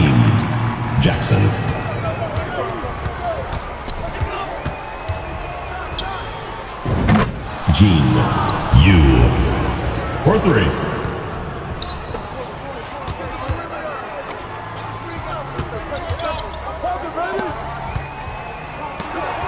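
A basketball thuds as it is dribbled on the court.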